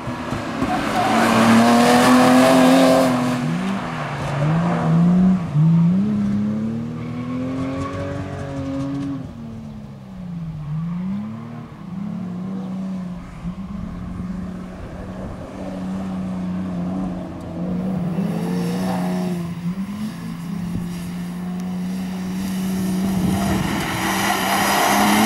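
Tyres squeal on the track as a car slides through the bends.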